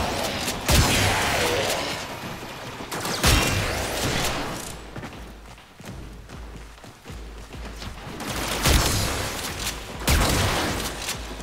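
Heavy weapon blows land with loud booming impacts.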